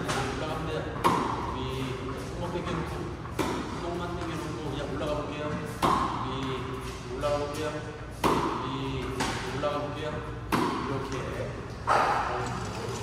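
A tennis racket strikes a ball with sharp pops in a room that echoes.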